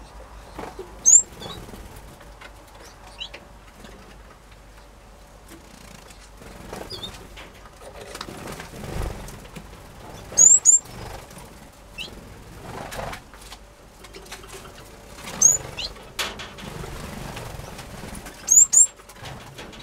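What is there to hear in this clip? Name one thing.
Small birds chirp and tweet in short bright calls.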